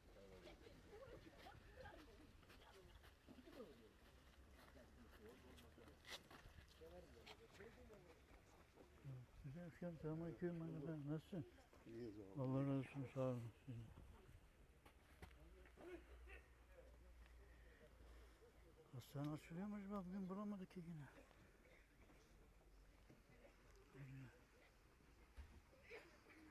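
Men murmur and talk quietly nearby.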